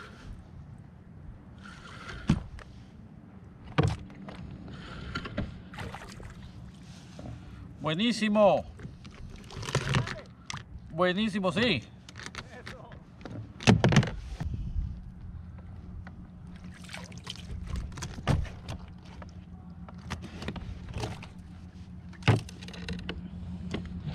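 A fishing reel clicks and whirs.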